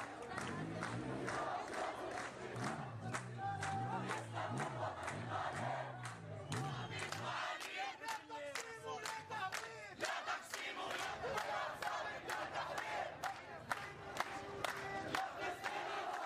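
A crowd chants loudly in unison outdoors.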